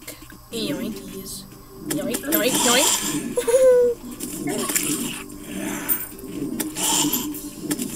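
Short game sound effects of hits and blows ring out.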